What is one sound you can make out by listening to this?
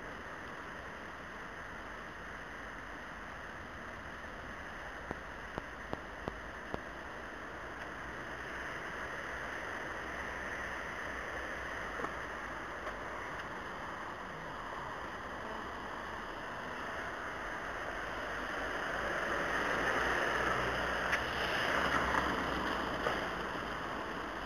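Tyres hiss steadily on wet roads outdoors.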